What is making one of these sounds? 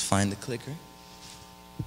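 A young man speaks briefly through a microphone.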